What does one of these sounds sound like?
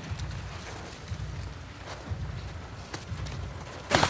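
Footsteps run quickly over wet grass.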